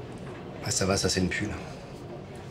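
A man speaks quietly and gently, close by.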